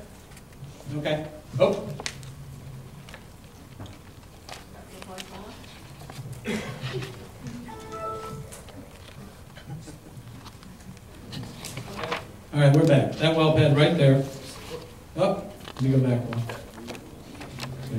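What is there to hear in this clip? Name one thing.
An elderly man speaks through a microphone in a large echoing hall, with pauses.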